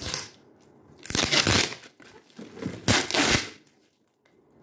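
Packing tape rips loudly off cardboard.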